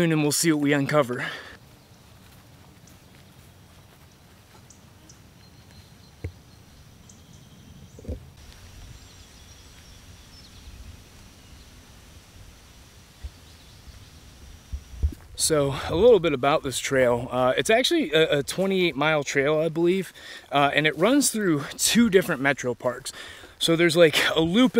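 A man talks calmly and close up.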